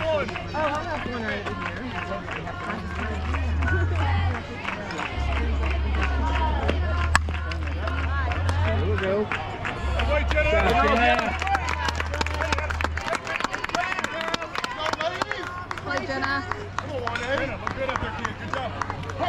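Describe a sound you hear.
Young women cheer and shout loudly nearby outdoors.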